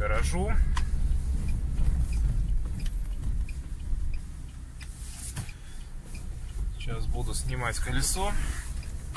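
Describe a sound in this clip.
Tyres crunch and rumble over a rough gravel road.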